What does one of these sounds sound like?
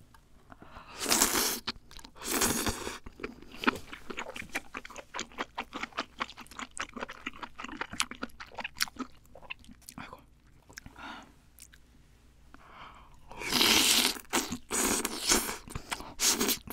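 A young woman slurps noodles loudly, close to the microphone.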